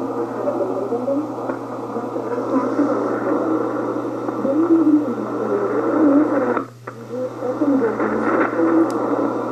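A shortwave communications receiver plays a distant AM broadcast through static.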